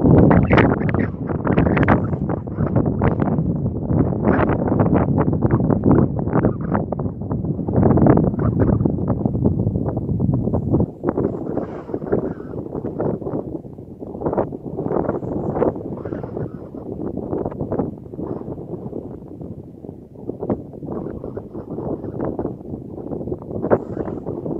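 Strong wind gusts and buffets the microphone outdoors.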